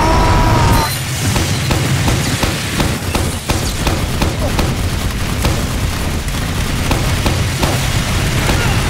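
A heavy machine gun fires in a rapid, rattling roar.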